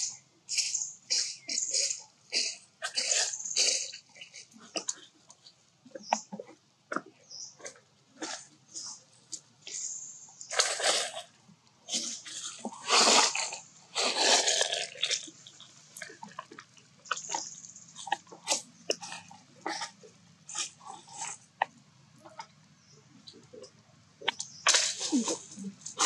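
Baby monkeys squeal and whimper in short, high bursts close by.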